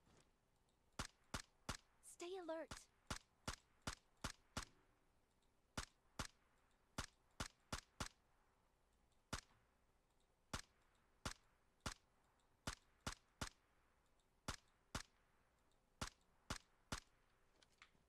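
Rifle shots crack one after another in quick single bursts.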